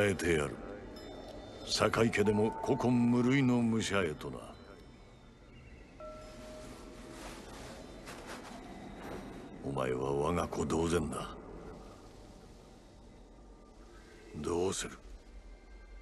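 An older man speaks slowly and gravely.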